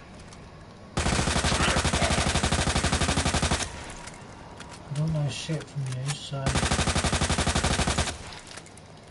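An automatic gun fires rapid bursts.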